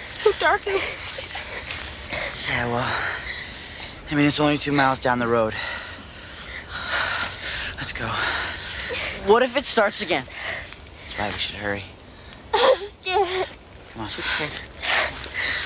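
A teenage girl speaks tensely, close by.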